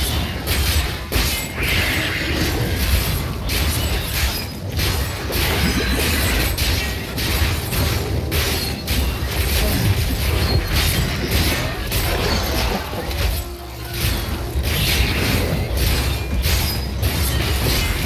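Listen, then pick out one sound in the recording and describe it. Game combat sounds of spells and blows clash rapidly and continuously.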